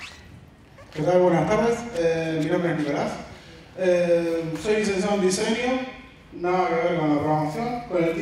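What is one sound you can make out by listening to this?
A woman speaks clearly through a microphone.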